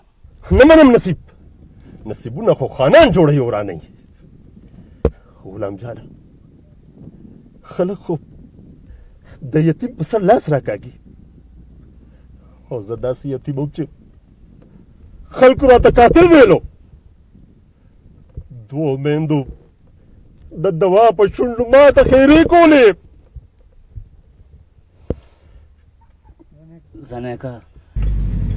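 An elderly man speaks close by in a tense, grave voice.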